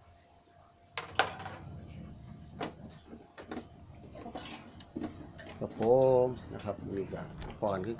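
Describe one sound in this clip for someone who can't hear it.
Plastic and metal dishes clatter and knock as they are handled.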